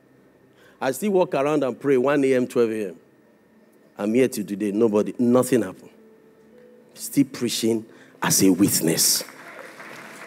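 A man speaks forcefully into a microphone, heard through loudspeakers in a large hall.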